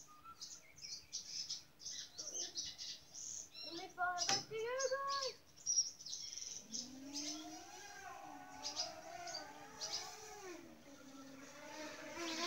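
Birds call and warble outdoors.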